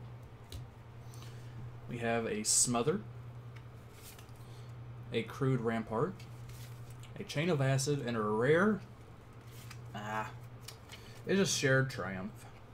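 Playing cards rustle and click as they are shuffled by hand.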